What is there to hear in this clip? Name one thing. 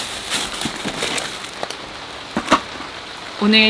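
Plastic food packages rustle and crinkle as hands lift them out.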